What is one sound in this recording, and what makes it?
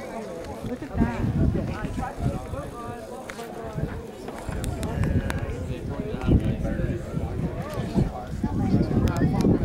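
Wind gusts roughly across open ground outdoors.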